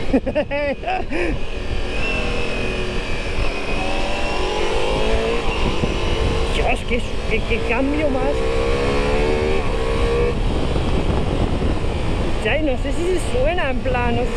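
A motorcycle engine hums and revs up and down through the gears.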